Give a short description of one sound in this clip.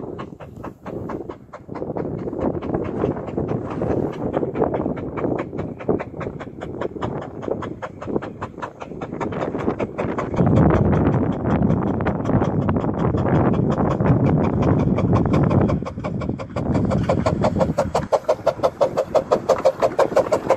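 A steam locomotive chuffs rhythmically as it approaches, growing louder.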